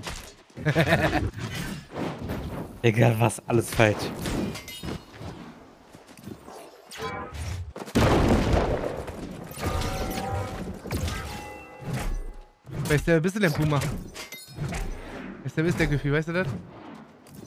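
Weapon blows strike enemies in quick bursts.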